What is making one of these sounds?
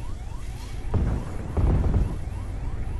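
A shell explodes on a tank with a loud blast.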